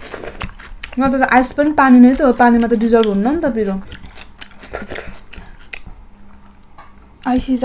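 Young women chew and smack food close to a microphone.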